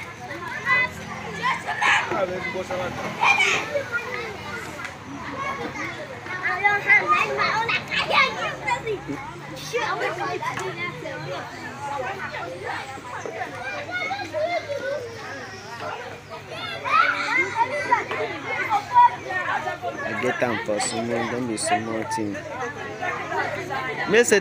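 Young children chatter and shout close by, outdoors.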